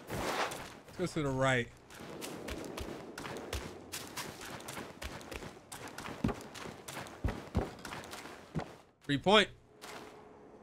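A young man speaks briefly and animatedly into a microphone.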